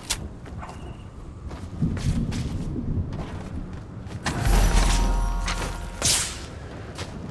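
Building pieces clank and thud into place.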